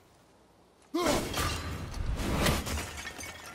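An axe whirs back through the air and slaps into a hand.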